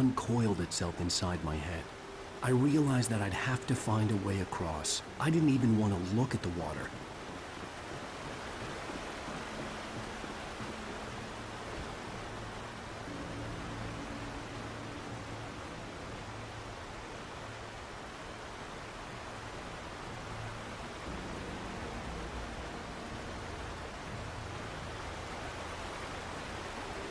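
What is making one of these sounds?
A river rushes steadily nearby.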